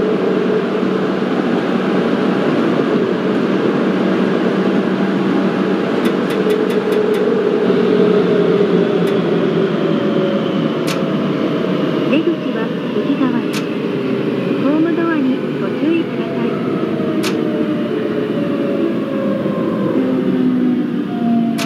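A train rumbles steadily along the rails through a tunnel.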